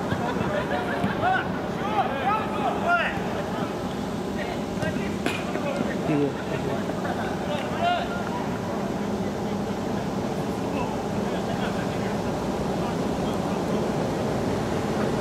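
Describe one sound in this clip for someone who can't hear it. A crowd of spectators murmurs and chatters nearby.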